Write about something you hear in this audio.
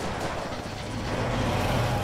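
A truck engine rumbles nearby.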